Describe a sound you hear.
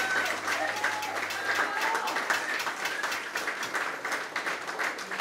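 Drums and cymbals are struck in a fast beat.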